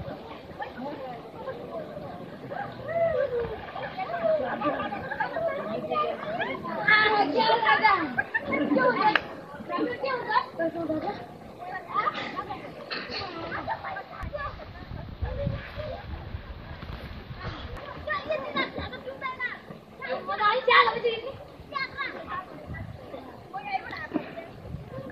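Children shout and laugh nearby.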